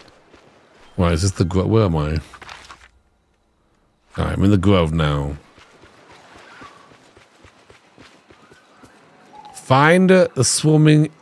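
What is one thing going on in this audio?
A man talks casually, close up through a microphone.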